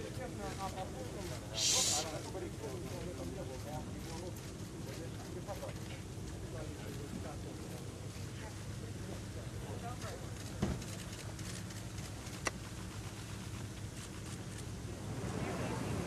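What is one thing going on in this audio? A crowd of people murmurs and talks quietly nearby.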